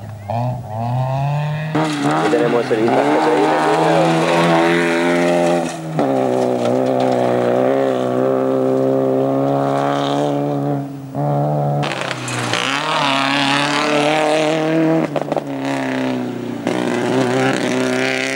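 A rally car engine roars and revs hard close by.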